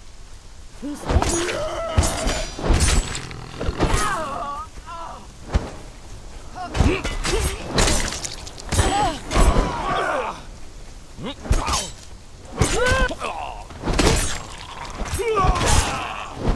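Blades clash and strike repeatedly in a close fight.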